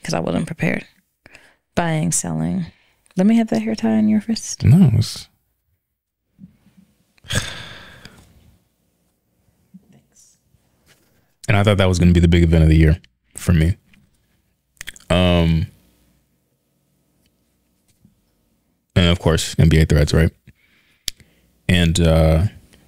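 A man talks calmly into a close microphone, with pauses.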